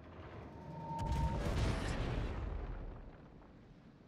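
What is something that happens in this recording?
Heavy ship guns fire with a deep, rumbling boom that slowly fades.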